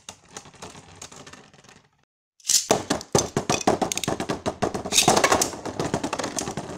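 Spinning tops knock sharply into each other.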